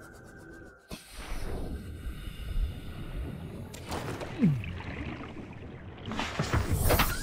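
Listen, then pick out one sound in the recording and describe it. Water bubbles and swirls around a swimming diver.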